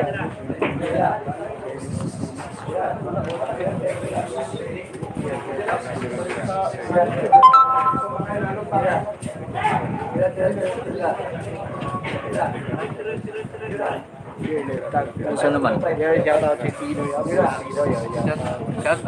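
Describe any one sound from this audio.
A crowd of men talk and call out loudly nearby.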